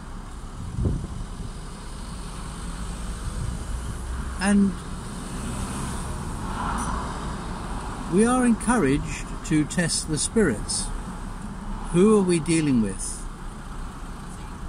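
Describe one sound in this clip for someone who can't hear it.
A car engine hums steadily in the background.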